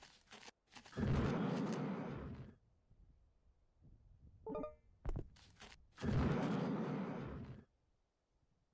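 A jet thruster roars in short bursts.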